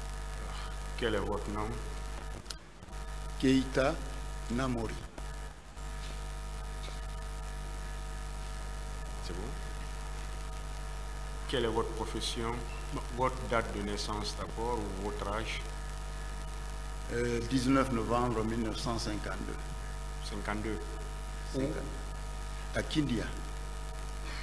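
A man speaks calmly through a microphone, with pauses between phrases.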